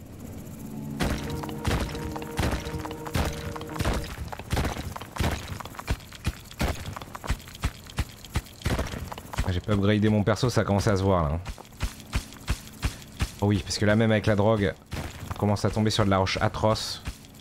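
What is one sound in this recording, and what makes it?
Digging thuds and crunches sound in quick succession.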